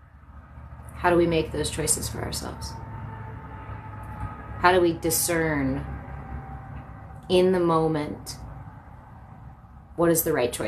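A young woman speaks calmly and softly close by.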